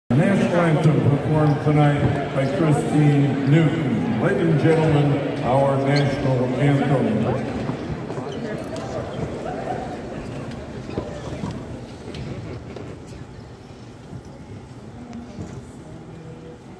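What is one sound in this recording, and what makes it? A crowd murmurs softly in a large arena.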